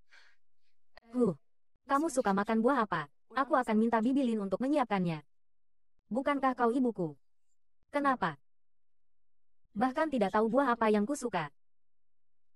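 A woman speaks close by, with animation, in a clear voice.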